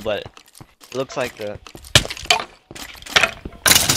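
A sword strikes a creature with a thud.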